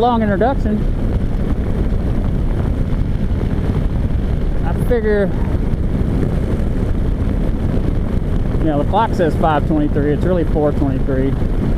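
A motorcycle engine hums and rises and falls in pitch.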